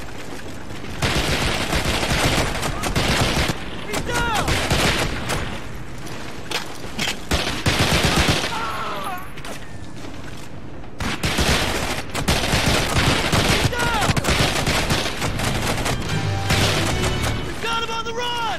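A rifle fires rapid, loud bursts of shots.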